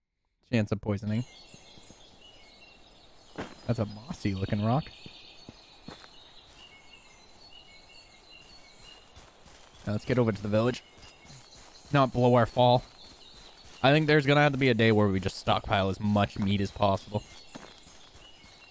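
Footsteps crunch on dry leaves and grass.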